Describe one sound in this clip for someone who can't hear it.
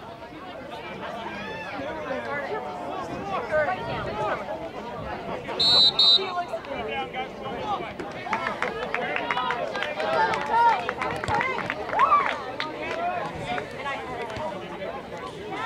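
Spectators cheer and call out from the sidelines.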